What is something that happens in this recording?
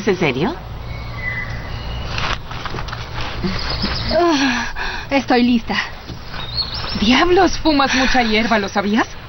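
Young women talk with each other nearby.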